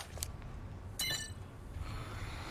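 An electronic lock beeps as it unlocks.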